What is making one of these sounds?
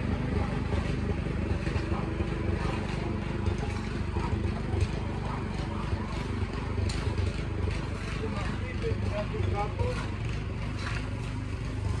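A hoe scrapes and chops into dry soil.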